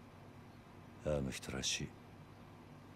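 A second man speaks briefly in a surprised tone.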